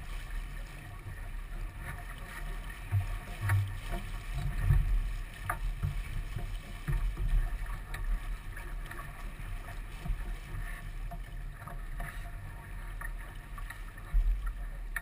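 Water splashes and rushes against a sailboat's hull.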